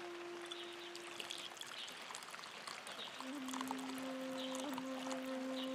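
Hot water pours and splashes steadily into a bowl.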